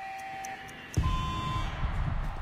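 A higher video game tone rings out as the round begins.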